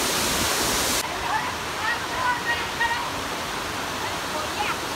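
A shallow stream rushes and splashes over rocks.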